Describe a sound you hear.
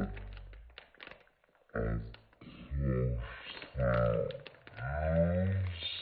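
Plastic wrapping crinkles under hands.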